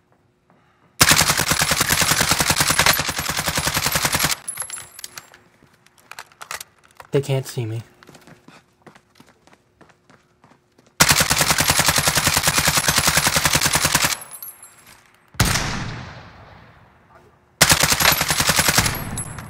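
An automatic rifle fires long, rapid bursts of loud shots.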